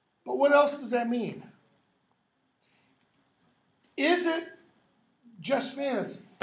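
An older man speaks in short, lively bursts, close by.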